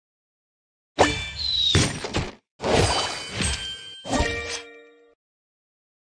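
A game treasure chest bursts open with a magical whoosh and chime.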